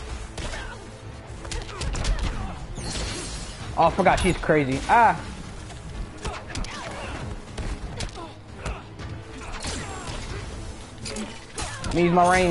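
Punches and kicks land with sharp thuds and whooshes.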